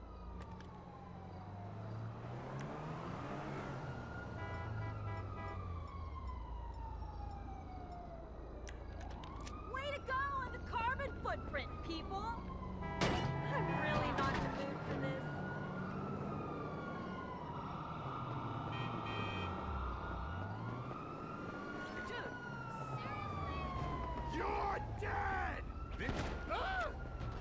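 A police siren wails, rising and falling over and over.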